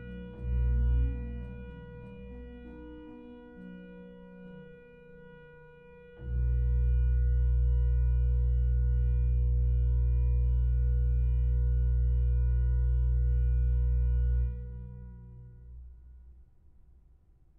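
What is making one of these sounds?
A pipe organ plays slow chords that ring out in a large, echoing room.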